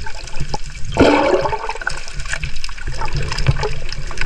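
Air bubbles burst and fizz underwater.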